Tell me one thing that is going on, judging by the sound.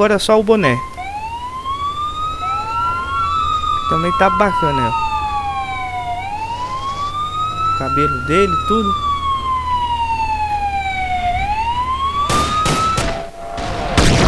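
A police siren wails, rising and falling.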